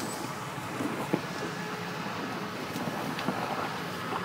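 Mud splatters and churns under spinning tyres.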